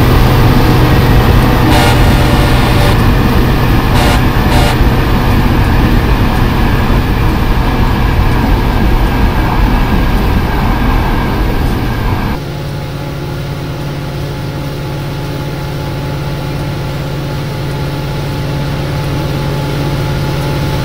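A locomotive engine hums steadily.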